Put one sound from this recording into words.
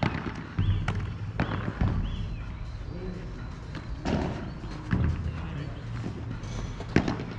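A padel ball is struck with a paddle with sharp pops.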